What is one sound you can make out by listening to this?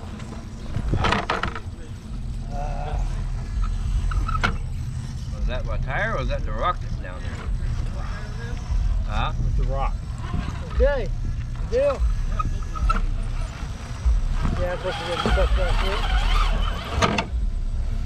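A small electric motor whirs as a toy truck crawls over rocks.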